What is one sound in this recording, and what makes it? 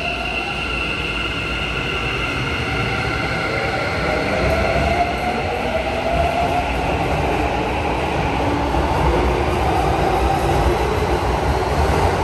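Train wheels rumble and clatter along the track.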